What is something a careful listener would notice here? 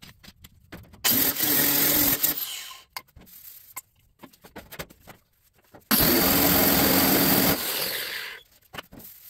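An angle grinder grinds metal in loud bursts.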